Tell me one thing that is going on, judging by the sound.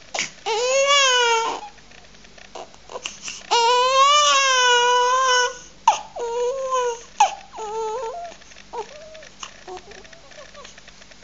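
A newborn baby cries loudly close by, then settles into soft whimpers.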